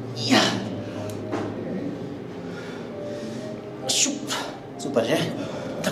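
A man exhales forcefully and grunts in bursts.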